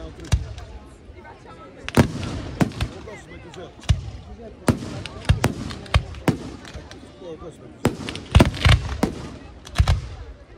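Fireworks burst with loud booms and bangs.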